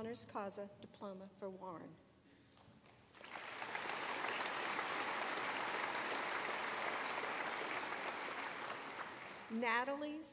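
An elderly woman speaks calmly through a microphone in a large hall.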